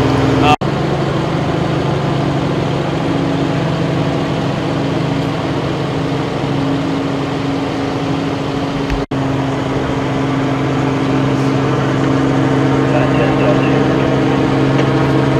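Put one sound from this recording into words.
A large vehicle engine idles nearby with a steady low hum.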